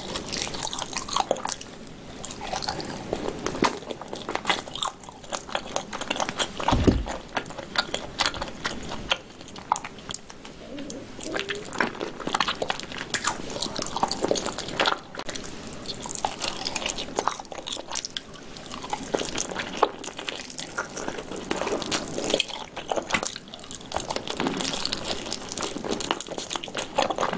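A young woman chews food wetly and loudly close to a microphone.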